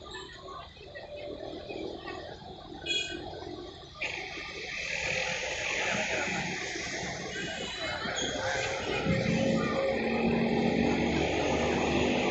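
An electric train rumbles closer along the tracks, growing louder.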